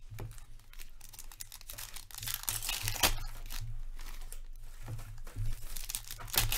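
Foil card wrappers crinkle and tear as hands open packs.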